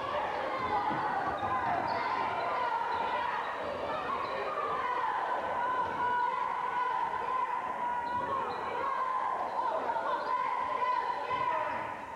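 A crowd of spectators calls out and cheers in a large echoing gym.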